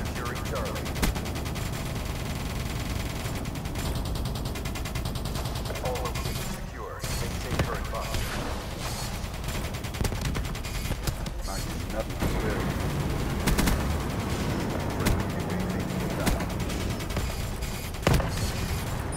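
Explosions thud and rumble.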